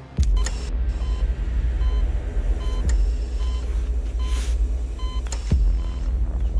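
A heart monitor beeps at a steady pace.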